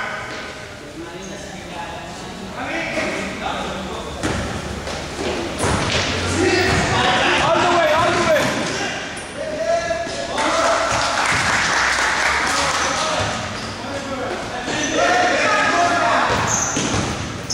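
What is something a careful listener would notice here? Young players shout and call out in a large echoing gym.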